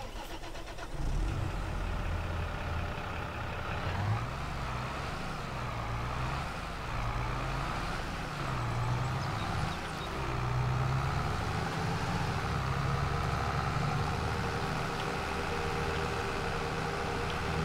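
A tractor engine rumbles steadily as the tractor drives.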